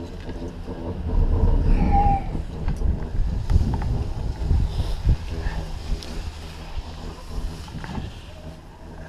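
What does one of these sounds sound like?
Wind rumbles and buffets against a microphone outdoors.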